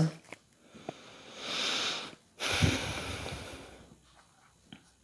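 Cards shuffle softly in a woman's hands.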